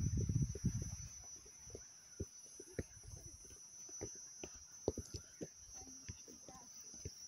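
A football thuds softly as a player dribbles it across grass.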